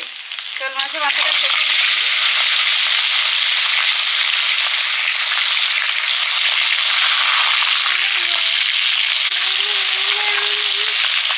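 Fish sizzles loudly as it fries in hot oil.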